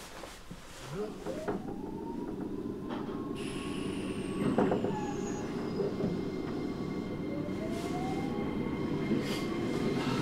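An electric train's motor whines, rising in pitch as the train pulls away.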